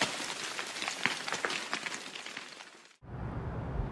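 Glass shatters into pieces.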